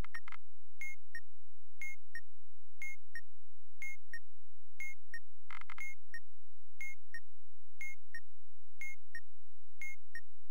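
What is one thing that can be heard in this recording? A game timer beeps steadily in a double tick about once every second.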